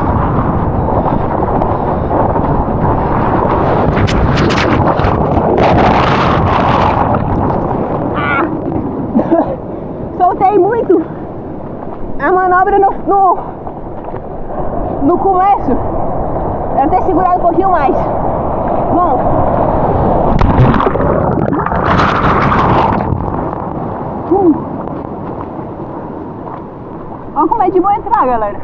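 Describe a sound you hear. Ocean waves crash and churn close by.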